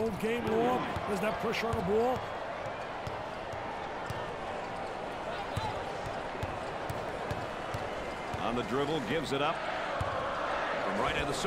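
A crowd cheers and murmurs steadily in a large arena.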